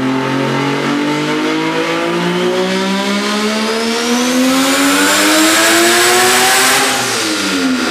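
A car engine revs hard, its roar climbing steadily to a high scream.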